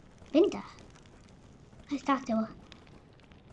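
A young girl talks briefly and with animation into a nearby microphone.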